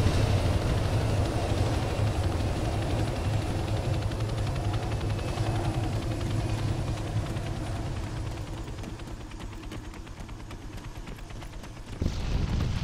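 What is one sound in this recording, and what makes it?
A helicopter's rotor thumps and roars nearby, then fades away.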